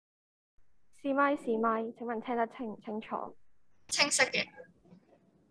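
A young woman speaks into a microphone through an online call.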